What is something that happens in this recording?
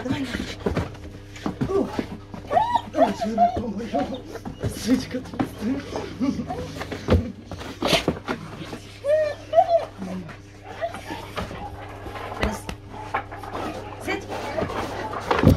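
A large dog growls and grumbles while playing.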